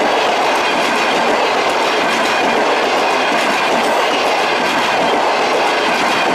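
A passenger train rushes past at speed with a loud rumble.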